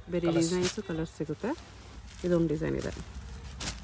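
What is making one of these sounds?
Silk fabric rustles as it is spread out by hand.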